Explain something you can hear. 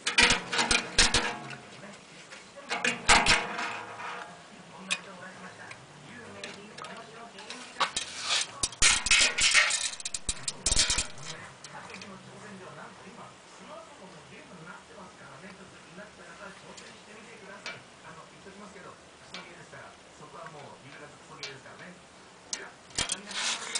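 A metal tape measure rattles and clicks as it is handled.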